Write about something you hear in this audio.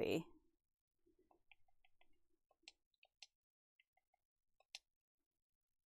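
Short electronic blips sound as a menu cursor moves.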